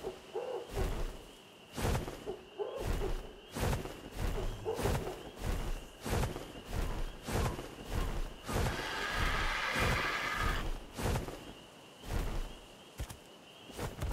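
Large wings flap in heavy, rhythmic whooshes.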